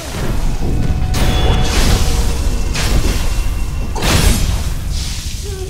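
Swords clash and slash in sharp, ringing strikes.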